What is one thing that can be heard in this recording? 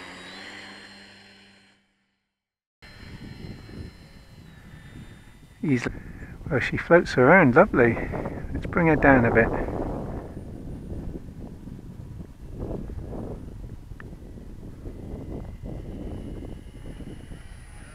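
An electric motor whines on a model plane taking off.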